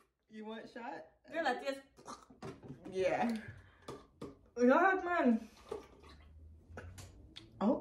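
Another young woman laughs close by.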